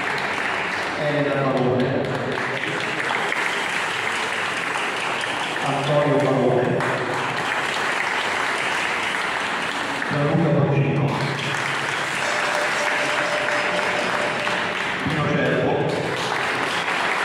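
A group of women and men sings together in short phrases.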